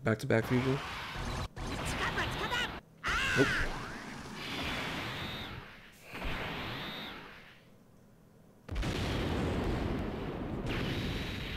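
Explosive blasts and rumbling bursts ring out.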